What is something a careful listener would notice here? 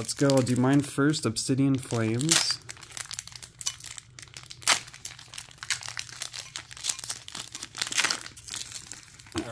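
A foil wrapper crinkles and tears open close by.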